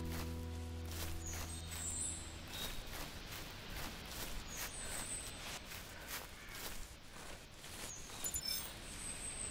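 Footsteps crunch through leaves and undergrowth on a forest floor.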